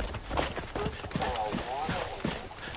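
A cougar snarls and growls close by.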